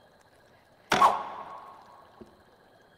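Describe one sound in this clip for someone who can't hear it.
A magic spell bursts with a sudden sparkling whoosh.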